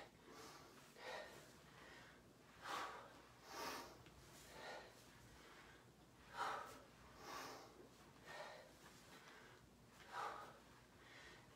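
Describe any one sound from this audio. A woman breathes hard with exertion.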